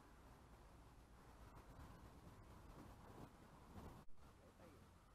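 A man talks calmly close to the microphone, outdoors in a light wind.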